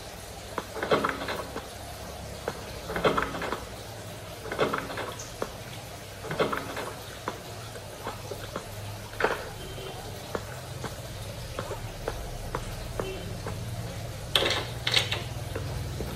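Footsteps sound steadily from a game through a small tablet speaker.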